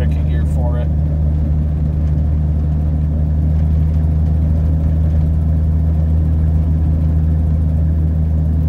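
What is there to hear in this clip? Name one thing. Tyres rumble over a snowy road.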